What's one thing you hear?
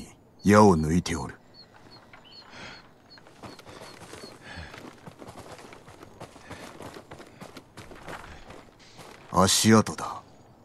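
A man exclaims loudly into a close microphone.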